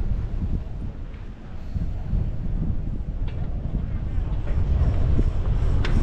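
A chairlift's cable rattles and clunks past a tower.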